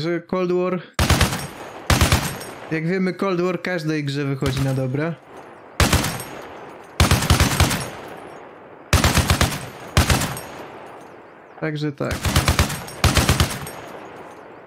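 A heavy machine gun fires loud rapid bursts.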